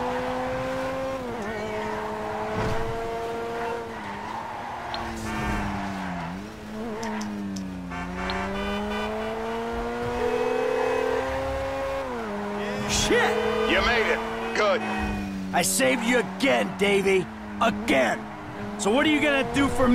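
A car engine hums steadily, rising and falling in pitch as the car speeds up and slows down.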